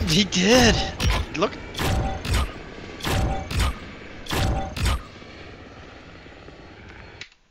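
A helicopter's rotor thuds in the distance.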